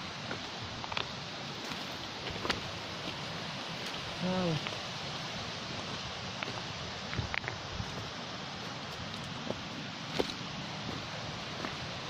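Wind rustles through leaves outdoors.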